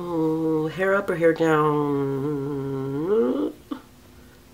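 A young woman sings a long drawn-out note close to a microphone.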